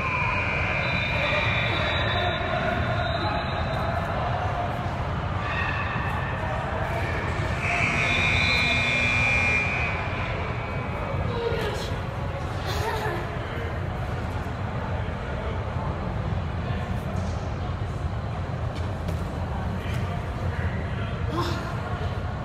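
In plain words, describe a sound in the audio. A child's hands and feet thud on a hard floor during cartwheels.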